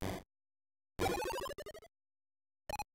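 A chirpy electronic jingle descends in quick steps.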